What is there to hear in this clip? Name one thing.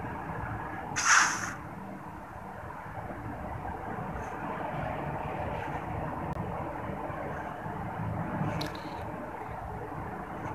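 Wind rushes steadily past during a freefall.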